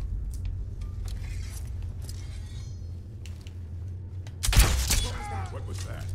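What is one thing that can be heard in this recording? Footsteps crunch on rough stone.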